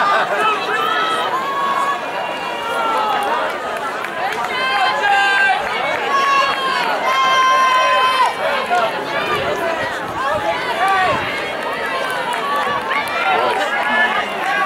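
Young people chatter and call out nearby outdoors.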